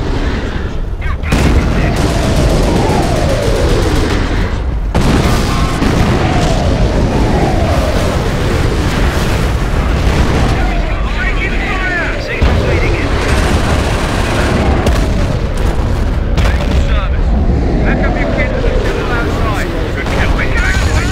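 Explosions boom and rumble in a battle.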